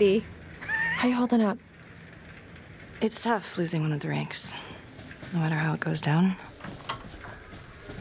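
A woman speaks calmly and close.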